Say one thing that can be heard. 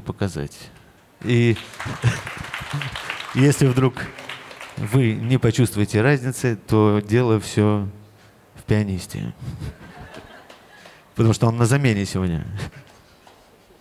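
A man speaks with animation into a microphone, laughing at times.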